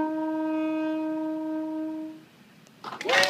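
A saxophone holds a long, steady note, then stops.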